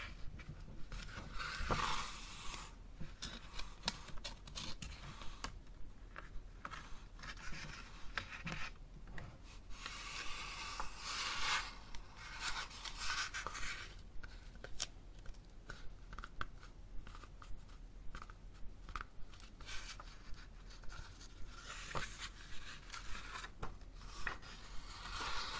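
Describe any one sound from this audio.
Fingers tap and scratch on a book's cover close by.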